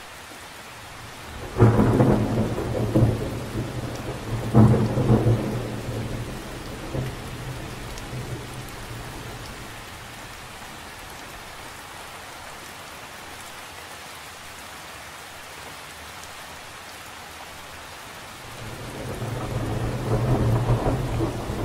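Rain patters steadily on the surface of a lake outdoors.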